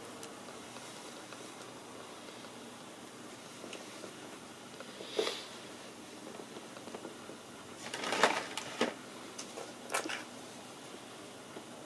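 Thin string rustles as it is pulled through small bones.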